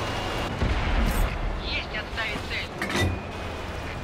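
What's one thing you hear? A shell explodes on impact.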